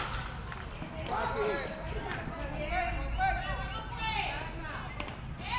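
Young men shout and call out in the distance.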